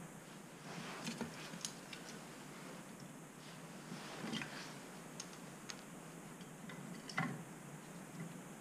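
Wood clunks and scrapes inside a metal stove as a log is placed.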